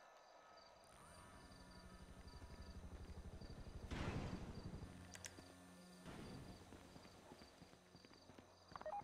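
A helicopter engine hums with rotor blades chopping nearby.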